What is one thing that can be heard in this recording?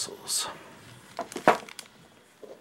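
A plastic packet crinkles in a hand.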